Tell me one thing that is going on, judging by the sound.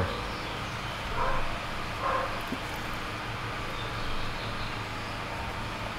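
Gloved hands rub and knock against engine parts.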